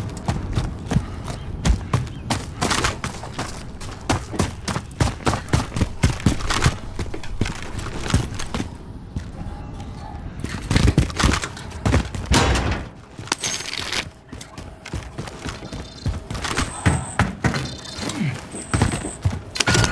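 Footsteps run quickly over gravel and hard floors.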